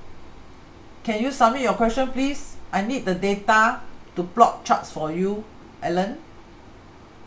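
A woman speaks calmly into a close microphone, as if over an online call.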